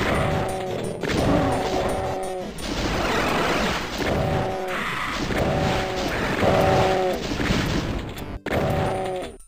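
A shotgun fires in loud, booming blasts.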